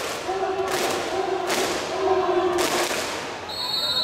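Spectators bang noisemakers in a rhythm.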